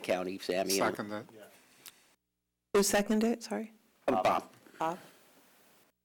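A man speaks calmly into a microphone in short phrases.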